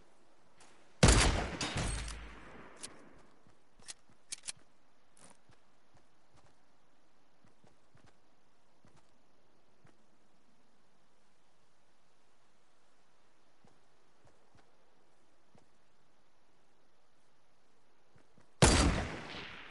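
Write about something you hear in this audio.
A rifle fires loud, booming shots that echo away.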